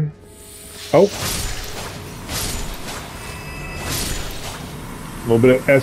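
A sword swings and strikes with sharp clashes.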